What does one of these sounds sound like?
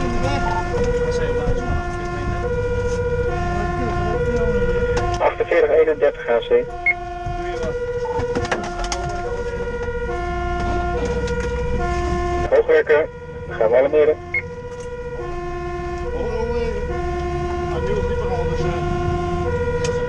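A two-tone siren wails steadily, heard from inside the vehicle.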